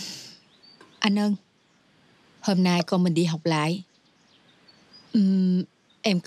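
A young woman speaks calmly and earnestly up close.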